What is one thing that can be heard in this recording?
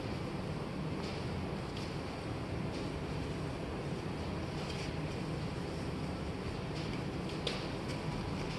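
A cloth wipes and squeaks against a metal panel.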